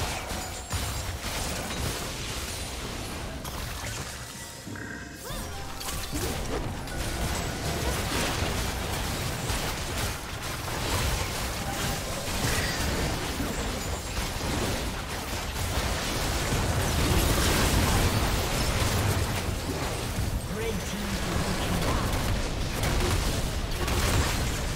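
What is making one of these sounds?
Magic blasts and sword hits clash rapidly in a busy fight.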